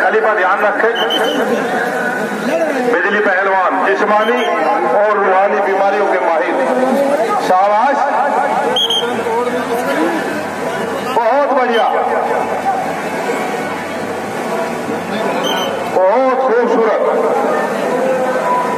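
A large crowd of men chatters and shouts nearby.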